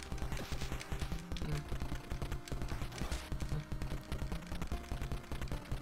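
Small bleeping explosions pop from a retro video game.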